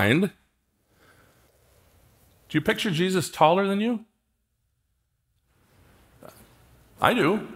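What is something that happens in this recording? A man speaks to an audience through a microphone in a large hall, with pauses between phrases.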